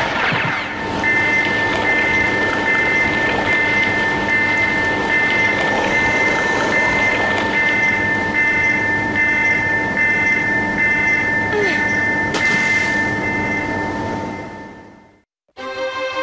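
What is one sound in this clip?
Electricity hums and crackles steadily over water.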